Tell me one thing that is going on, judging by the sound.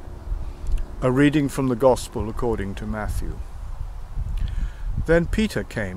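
An elderly man speaks calmly, close to the microphone.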